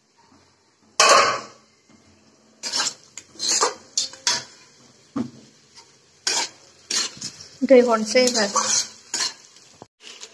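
A metal spatula scrapes and clatters against a metal pan.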